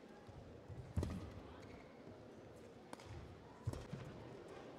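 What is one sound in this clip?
A shuttlecock is struck with a racket, with sharp pops echoing in a large hall.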